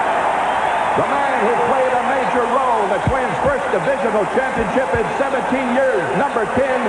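Fans whistle shrilly in the stands.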